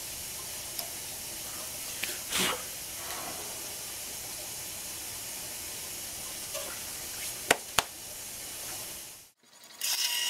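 A cutting tool scrapes and shaves plastic on a spinning lathe.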